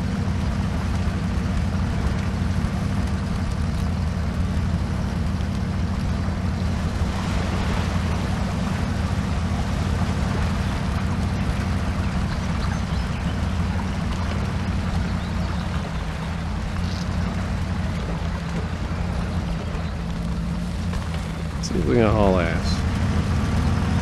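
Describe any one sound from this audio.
A truck's diesel engine rumbles steadily throughout.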